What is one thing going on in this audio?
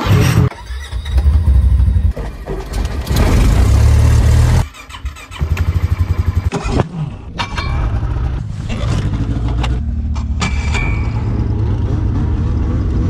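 An engine rumbles and revs.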